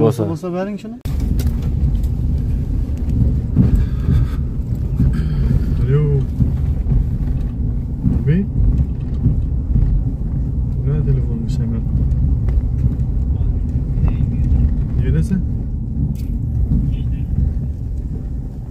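A car's engine rumbles as it drives along a bumpy dirt road.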